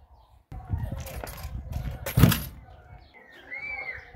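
A car door thumps shut.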